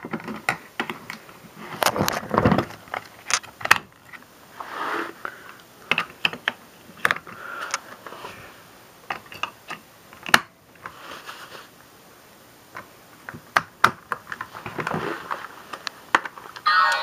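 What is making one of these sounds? Fingers tap and click against a small plastic toy.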